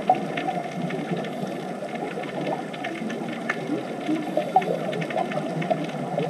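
Scuba divers' exhaled bubbles gurgle and burble underwater.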